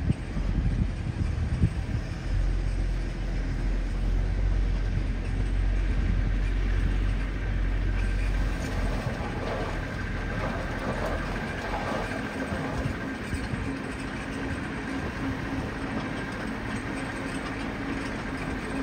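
A truck engine rumbles close by.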